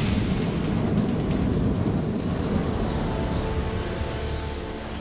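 Heavy punches and thuds land in a brawl.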